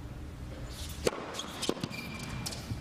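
A tennis ball is struck sharply by a racket.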